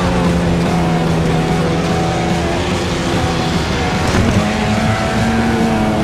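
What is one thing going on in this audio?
A car engine drones steadily, shifting pitch as it changes gear.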